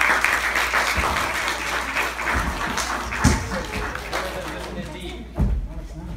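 Small feet thump on a wooden stage.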